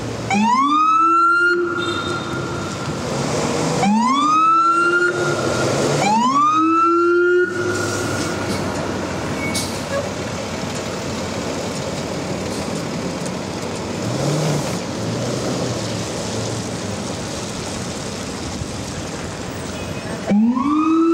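A siren on a passing truck whoops in short rising bursts close by.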